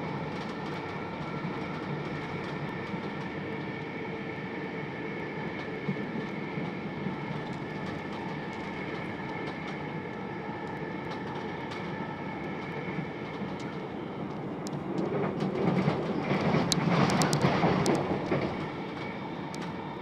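A train rumbles and hums steadily along the tracks.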